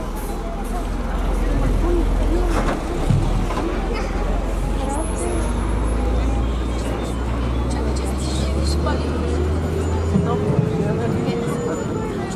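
A man speaks to the crowd through a loudspeaker.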